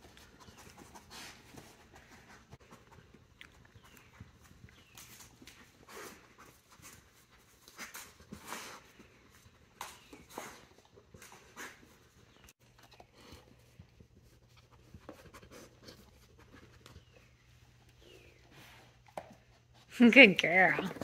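A dog noses at cardboard toys, which rustle and knock softly.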